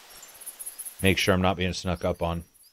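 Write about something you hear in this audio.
A young man talks loudly and with animation through a microphone.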